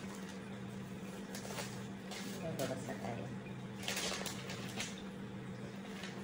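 Paper rustles as a man handles a sheet.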